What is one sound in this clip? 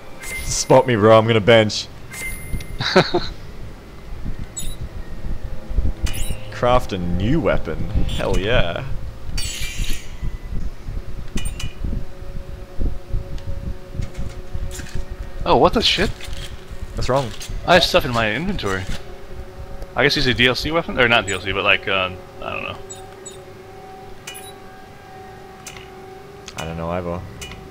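Short electronic beeps chime as menu options are picked.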